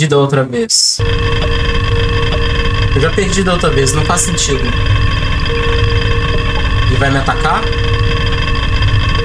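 A fan whirs with a steady low hum.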